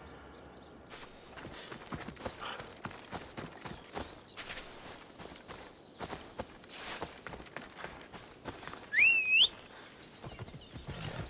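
Footsteps crunch on dry grass and gravel.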